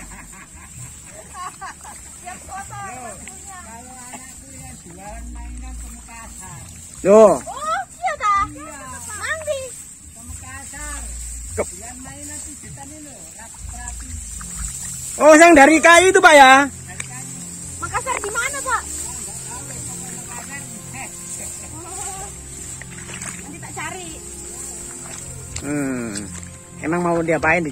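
Men talk and call out to each other outdoors.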